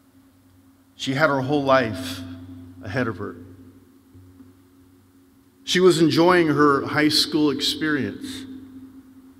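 A middle-aged man speaks calmly into a microphone, echoing through a large hall.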